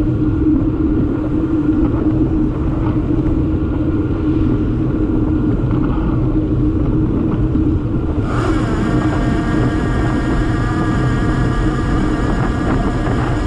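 Cars pass by on the road.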